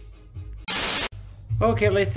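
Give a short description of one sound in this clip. A burst of static hisses loudly.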